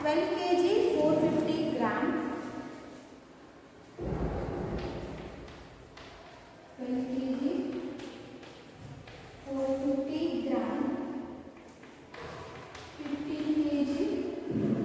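A young woman speaks calmly and clearly in a room with some echo.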